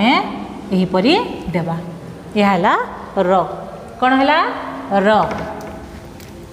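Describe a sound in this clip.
A woman speaks in a sing-song teaching voice close by.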